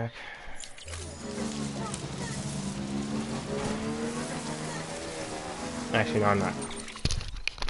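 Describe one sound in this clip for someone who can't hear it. A motorbike engine hums and revs.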